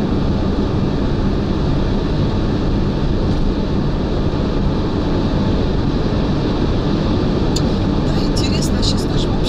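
Wind and road noise roar steadily from a car driving fast on a highway.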